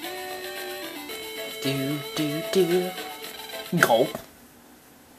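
A chiptune melody plays from a video game.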